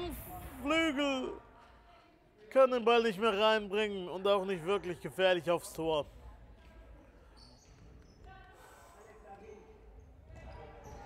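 A ball is kicked across a hard floor.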